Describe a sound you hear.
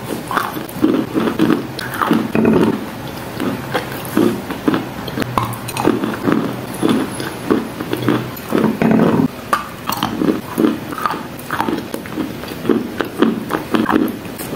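A young woman chews food wetly and loudly, close to a microphone.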